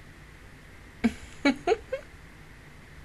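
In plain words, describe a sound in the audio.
A young woman giggles briefly into a close microphone.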